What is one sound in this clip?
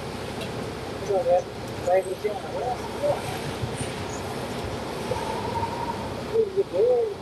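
A young woman talks briefly nearby.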